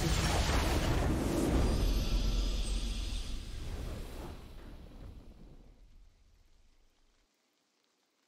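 A triumphant game victory fanfare plays loudly and fades away.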